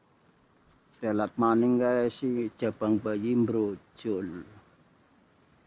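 An elderly man speaks calmly and closely.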